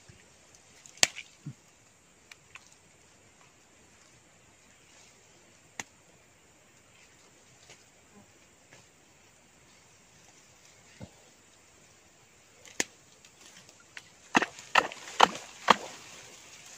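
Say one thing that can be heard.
Dry leaves and twigs crackle and snap.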